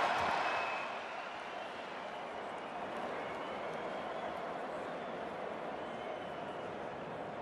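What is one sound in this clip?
A large stadium crowd cheers and applauds loudly, louder at first and then settling.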